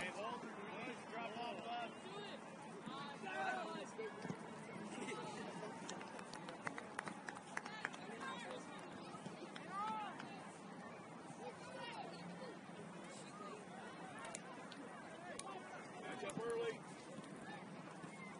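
A crowd of spectators shouts and calls out across an open outdoor field.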